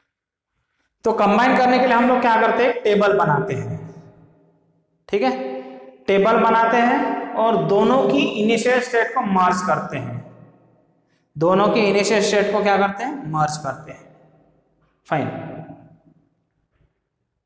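A man explains calmly and clearly, close to a microphone.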